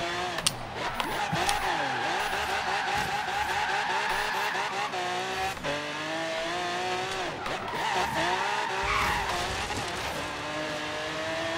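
A powerful car engine roars and revs up and down.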